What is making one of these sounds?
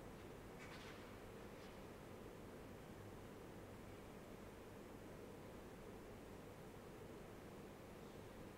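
A man speaks quietly from a distance in a large echoing hall.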